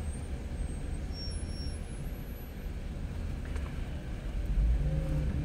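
A car engine idles quietly.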